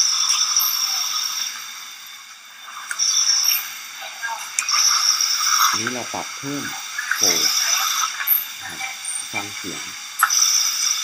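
A respirator hisses in short, repeated bursts of air.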